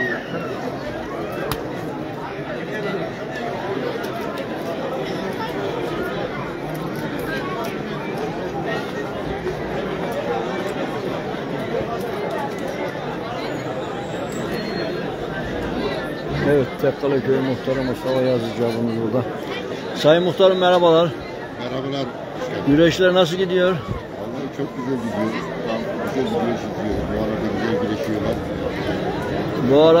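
A large crowd chatters steadily all around, outdoors.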